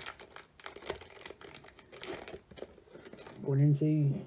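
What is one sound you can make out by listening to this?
Foil wrapping crinkles and rustles as it is torn open.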